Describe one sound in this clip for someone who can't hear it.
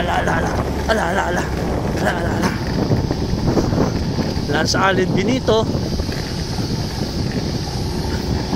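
Bicycle tyres roll and crunch over a rough dirt track.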